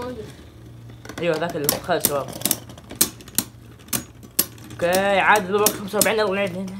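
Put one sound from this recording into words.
Spinning tops clash and click against each other.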